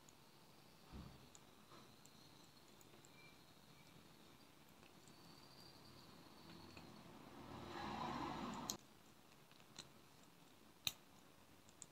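Glass beads click softly against each other.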